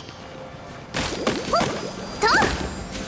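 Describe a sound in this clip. A magic spell bursts with a bright crackling whoosh.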